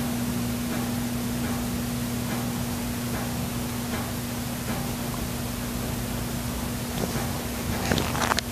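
A kitten purrs softly and steadily up close.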